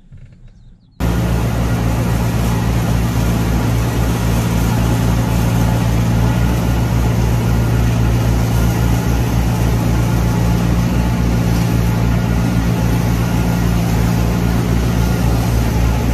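A machine engine drones loudly and steadily.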